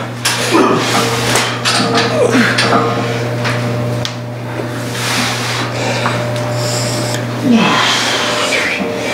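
A leg press machine's weight sled slides and clanks with each push.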